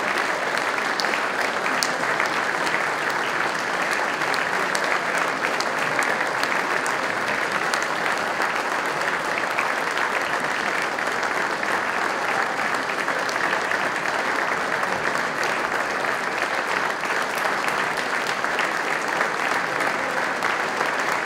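A large crowd applauds steadily in a big echoing hall.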